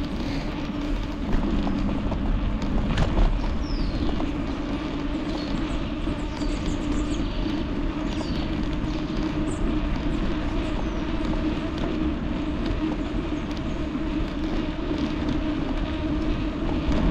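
Wind rumbles and buffets steadily past a moving bicycle.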